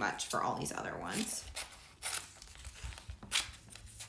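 Scissors snip through plastic film.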